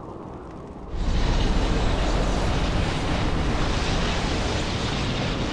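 A deep, roaring magical rumble suddenly swells and holds steady.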